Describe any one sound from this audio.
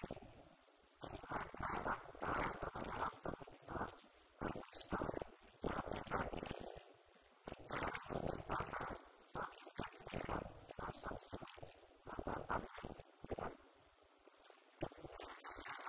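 A middle-aged woman speaks animatedly into a microphone over a loudspeaker in an echoing hall.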